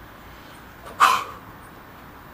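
A man claps his hands once, sharply.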